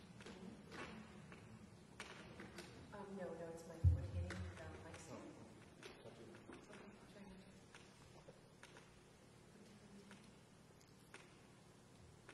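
A young woman speaks quietly into a microphone.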